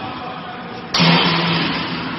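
A metal mould clunks shut.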